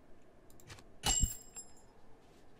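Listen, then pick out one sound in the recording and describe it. A large wooden crossbow fires with a sharp thwack.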